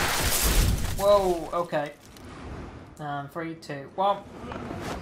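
A man speaks urgently and loudly nearby.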